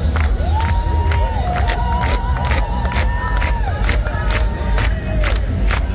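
Hands clap close by.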